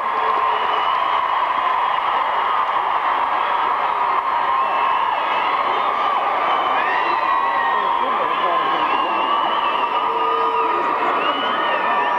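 A drummer pounds a drum kit in a large echoing hall.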